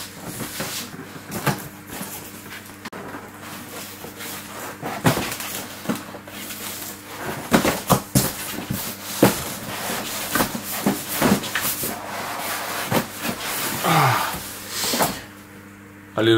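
Cardboard and paper rustle and scrape close by.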